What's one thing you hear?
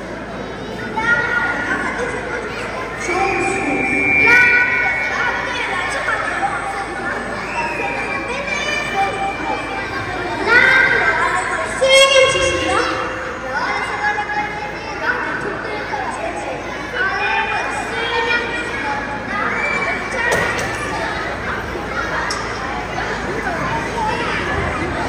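A young child speaks loudly and with animation through a microphone, echoing in a large hall.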